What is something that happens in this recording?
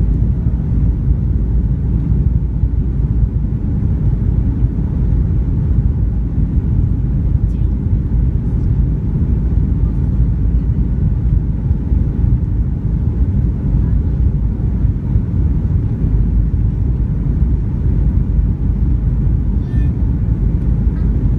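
Jet engines roar with a steady, deep rumble inside an airliner cabin.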